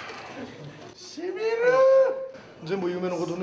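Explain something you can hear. A man groans loudly with a strained cry.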